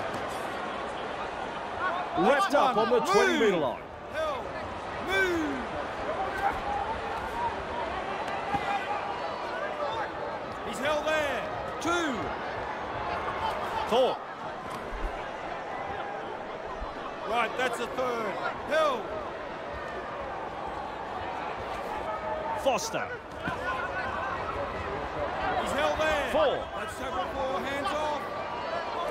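A large crowd cheers and chants steadily in a stadium.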